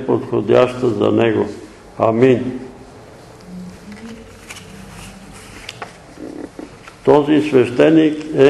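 An elderly man reads aloud slowly and calmly.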